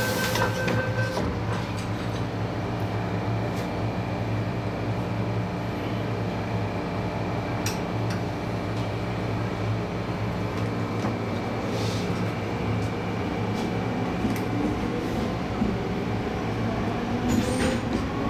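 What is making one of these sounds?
A train hums and rumbles steadily as it pulls out and travels.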